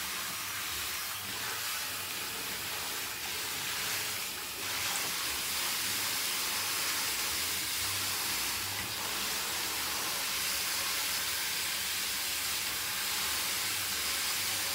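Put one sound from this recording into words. Water sprays steadily from a shower hose onto hair.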